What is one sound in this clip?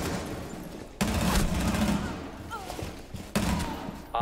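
Rapid gunfire bursts ring out loudly.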